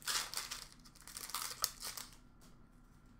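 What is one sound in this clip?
Plastic packaging rustles and crinkles as it is handled up close.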